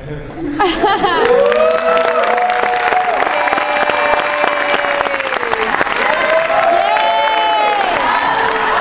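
A choir of men and women sings together in a large echoing hall.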